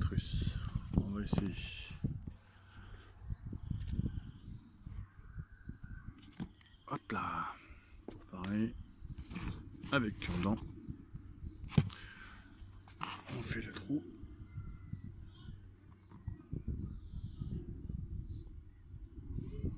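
Fingers press and rustle loose soil.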